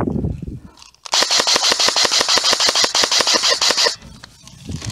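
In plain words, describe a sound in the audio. A gun fires a rapid burst of sharp clicks close by.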